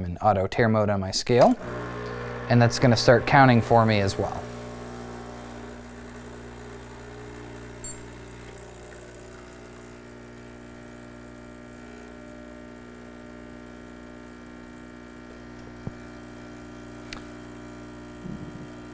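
An espresso machine hums steadily as it pumps coffee.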